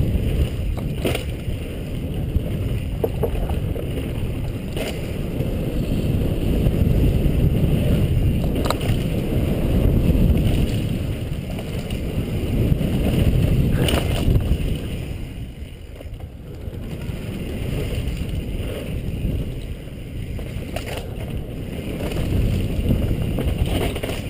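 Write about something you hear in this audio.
Wind rushes loudly past a bike rider moving fast downhill.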